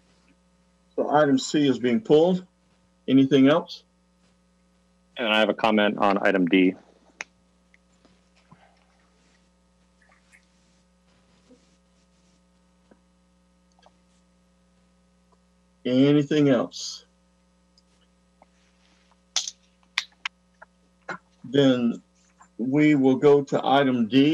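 An older man speaks calmly over an online call, in short bursts.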